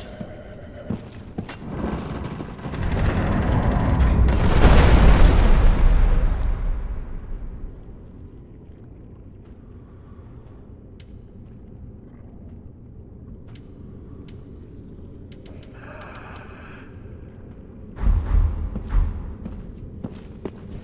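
Armour clanks as a knight walks.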